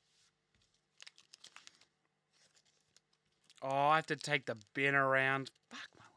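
A foil pack crinkles as it is handled.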